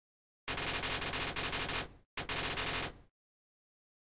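A rapid string of short electronic blips chatters in two quick bursts.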